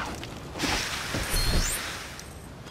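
A hose sprays water in a short hissing burst.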